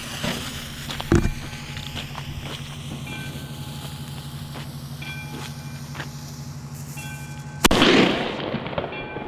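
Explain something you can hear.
Firecrackers pop and crackle repeatedly at a distance.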